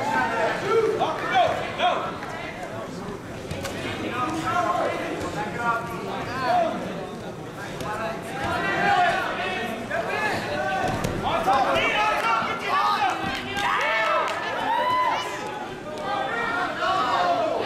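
Spectators shout and cheer throughout, echoing in a large hall.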